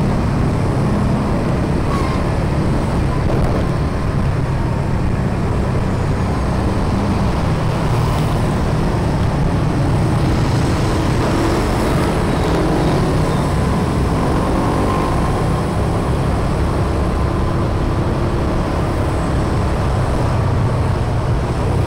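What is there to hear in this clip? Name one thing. Motorbike traffic drones all around on the road.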